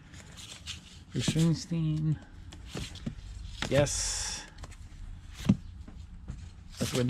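Record sleeves slide and knock against each other as they are flipped through.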